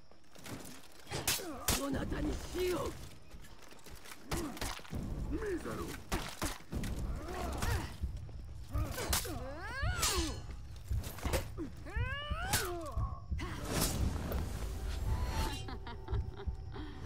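Heavy blades clash and clang in sharp metallic strikes.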